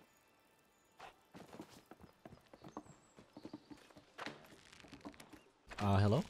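Small quick footsteps patter on wood.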